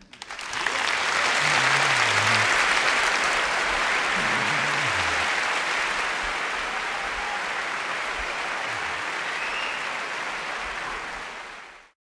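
A large audience applauds and cheers loudly in a big hall.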